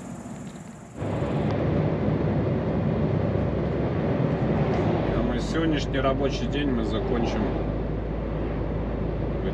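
Tyres roar steadily on a highway as a vehicle drives along.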